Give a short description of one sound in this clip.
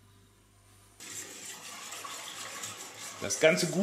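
A whisk clatters against a metal pot.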